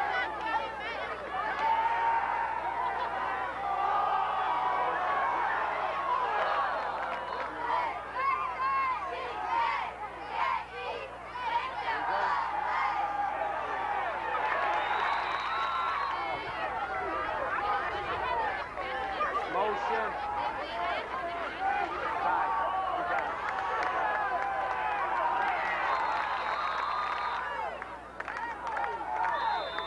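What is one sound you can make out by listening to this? A crowd of people talks and cheers loudly outdoors.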